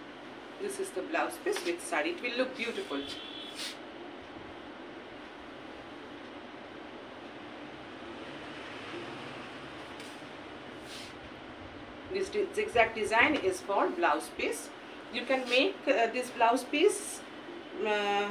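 A middle-aged woman talks close by with animation.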